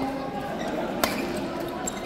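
A racket smacks a shuttlecock with a sharp crack.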